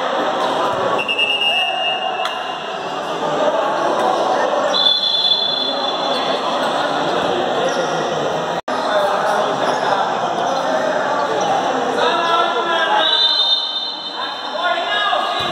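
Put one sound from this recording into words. A referee's whistle blows sharply several times.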